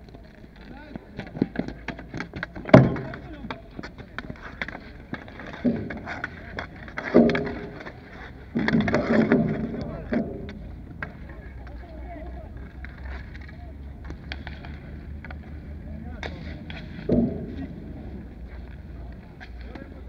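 Hockey sticks clack and scrape on a hard outdoor court.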